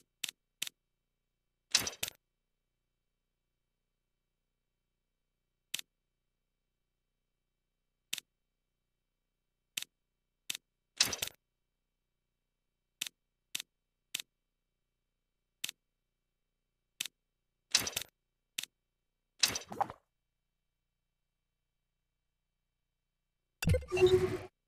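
Short electronic menu clicks and chimes sound again and again.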